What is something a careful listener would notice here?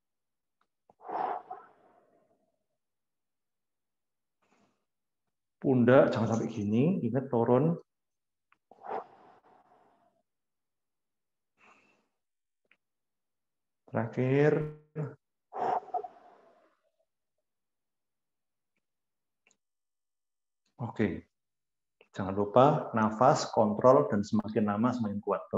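A young man speaks calmly into a microphone on an online call, in short bursts.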